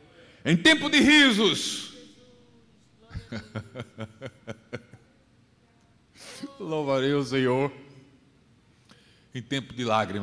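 A middle-aged man speaks with emphasis into a microphone, his voice carrying through a loudspeaker in a large hall.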